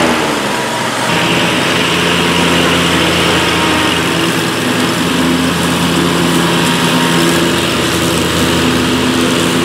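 A zero-turn mower engine roars as the mower cuts through thick grass.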